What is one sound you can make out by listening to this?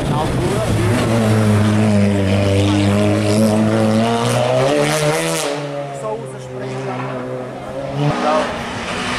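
A racing car engine roars loudly as it speeds by and fades away.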